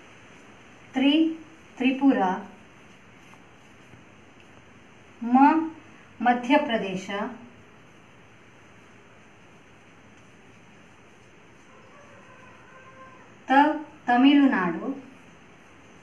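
A woman reads out words in short bursts, close by.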